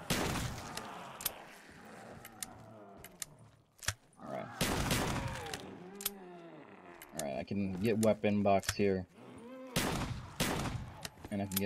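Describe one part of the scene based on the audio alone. A shotgun fires loudly.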